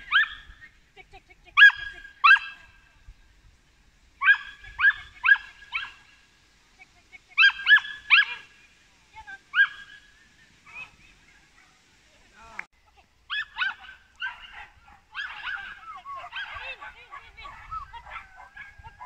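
A small dog barks repeatedly in sharp, high yaps outdoors.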